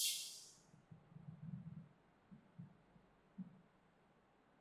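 A marker taps and scrapes softly on a whiteboard.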